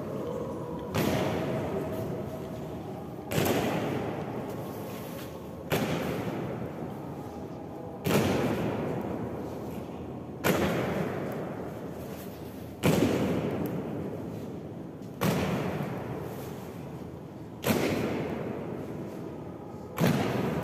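Soldiers' boots stamp in unison in slow march, echoing through a large hall.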